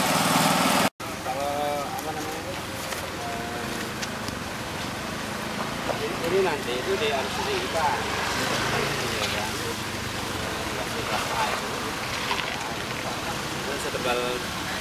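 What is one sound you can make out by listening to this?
A man talks calmly outdoors, close by.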